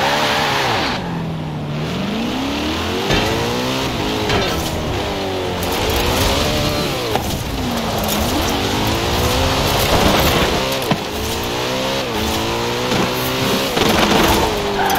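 Tyres skid and screech on the road.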